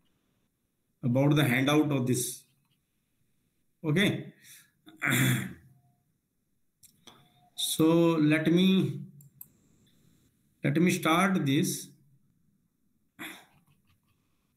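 A man talks calmly in short phrases, heard through an online call.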